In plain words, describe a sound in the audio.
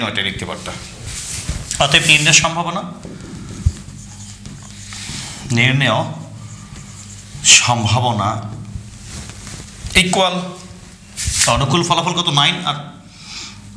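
A man speaks steadily and clearly, close by.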